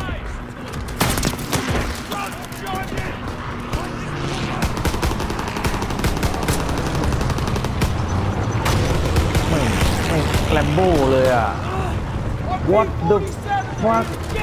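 Rifles and machine guns fire in rapid bursts.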